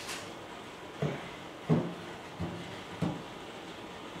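Clay is set down and tapped on a potter's wheel with dull knocks.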